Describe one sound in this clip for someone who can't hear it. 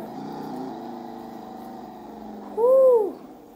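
A car engine idles and hums steadily.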